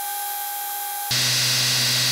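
A steel blade grinds against a running sanding belt.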